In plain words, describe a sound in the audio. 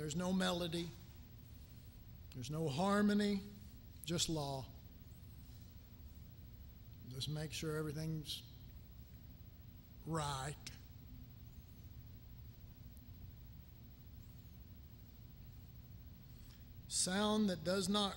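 A middle-aged man speaks calmly into a microphone in short phrases, with long pauses.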